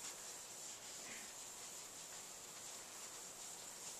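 A felt eraser rubs softly across a blackboard.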